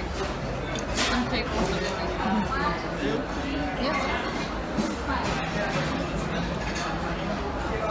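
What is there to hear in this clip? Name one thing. A knife scrapes meat off a skewer.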